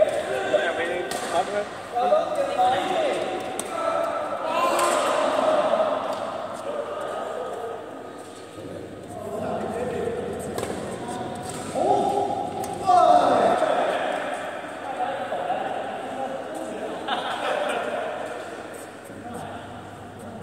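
A badminton racket hits a shuttlecock in a large echoing hall.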